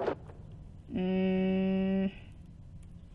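A short electronic buzzing tone sounds.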